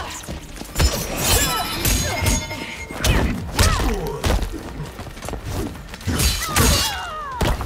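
Swooshing strikes whip through the air.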